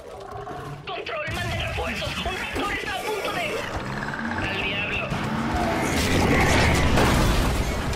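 A large creature screeches and roars.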